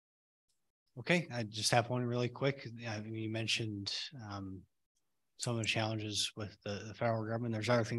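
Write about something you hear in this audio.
A man speaks casually into a microphone.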